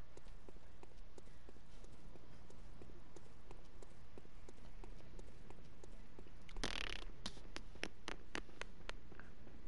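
Footsteps run quickly across a stone floor in a large echoing hall.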